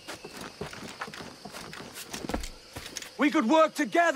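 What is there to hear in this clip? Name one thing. Quick footsteps patter on leafy ground.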